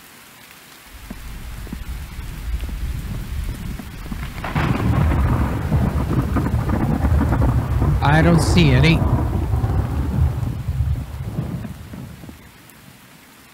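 Heavy rain pours down with a loud rushing roar.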